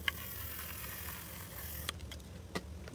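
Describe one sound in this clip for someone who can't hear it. Foam hisses from a spray can.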